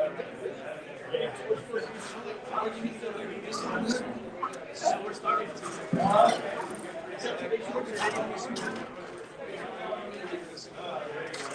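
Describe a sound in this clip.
A middle-aged man talks with animation, slightly distant.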